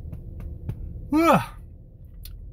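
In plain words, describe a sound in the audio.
A man yells out loudly.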